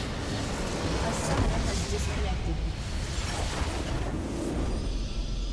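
A deep explosion booms and rumbles.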